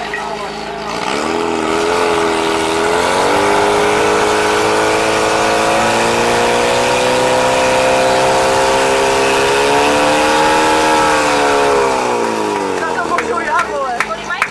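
A portable fire pump engine revs up hard under load, then winds down.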